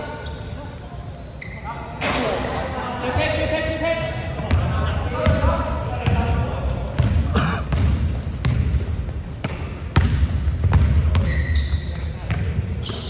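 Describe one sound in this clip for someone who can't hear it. A basketball thuds as it bounces on a hard floor.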